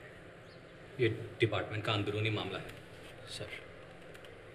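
A man answers calmly from a short distance.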